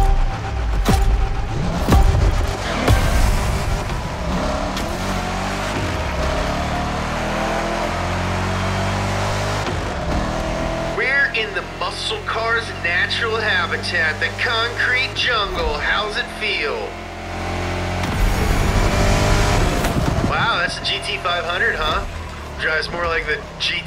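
A race car engine roars and revs up through the gears at high speed.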